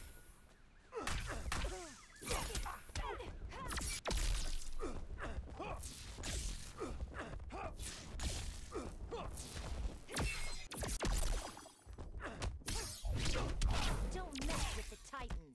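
Punches and kicks land with heavy thuds and cracks in a fight.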